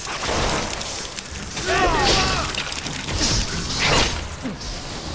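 A monster roars and growls.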